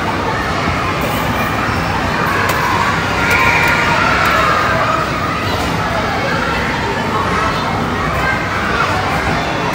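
Children shout and call out while playing in a noisy echoing hall.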